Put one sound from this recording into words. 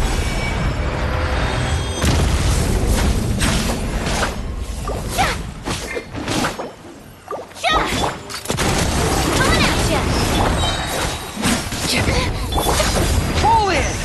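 Game music plays loudly with booming bass.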